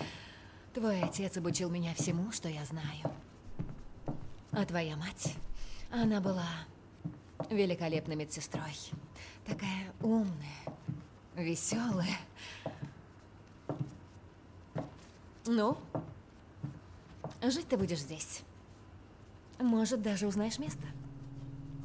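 A middle-aged woman speaks calmly and closely.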